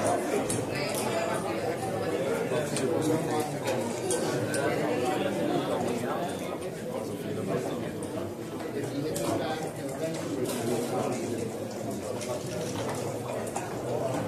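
A crowd of men and women murmurs steadily nearby.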